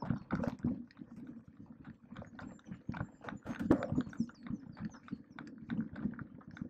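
Bicycle tyres crunch and bump over a dirt trail.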